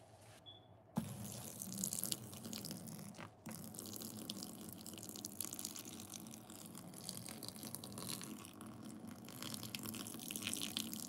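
Water pours onto a sponge and splashes.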